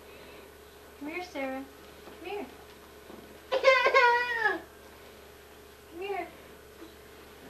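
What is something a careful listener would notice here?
A toddler babbles and squeals.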